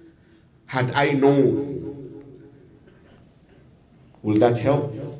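A man preaches loudly and with passion into a microphone, his voice ringing in a reverberant room.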